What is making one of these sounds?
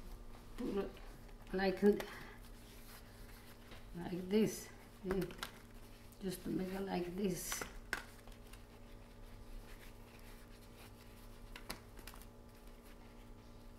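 Soft vegetable pieces tap and rustle on a metal tray.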